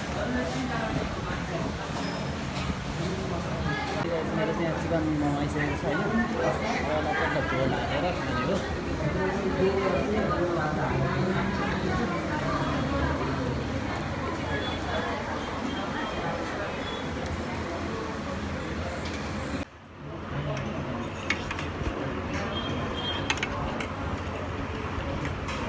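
Cutlery clinks against metal plates.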